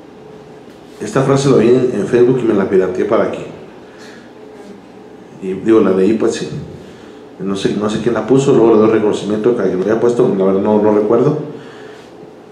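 A man speaks with animation into a microphone, heard through loudspeakers in a room.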